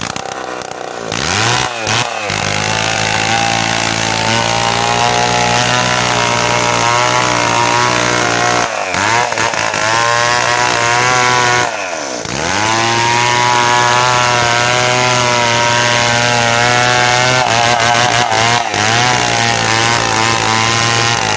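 A gasoline chainsaw at full throttle cuts through a log.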